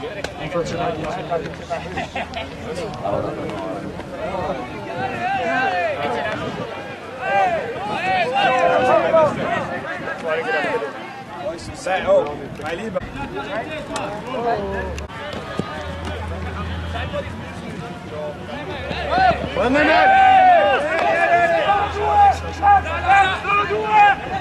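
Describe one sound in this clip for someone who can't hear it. Young men shout and call to each other outdoors on a field.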